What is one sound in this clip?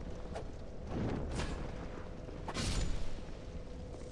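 A blade swishes and strikes with sharp hits.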